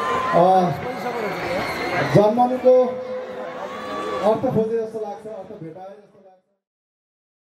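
A man sings loudly through loudspeakers outdoors.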